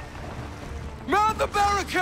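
A man shouts with animation outdoors.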